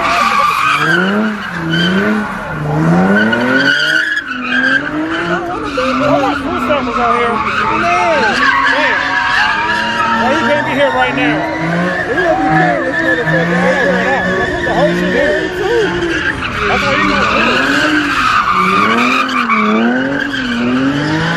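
Tyres screech on asphalt.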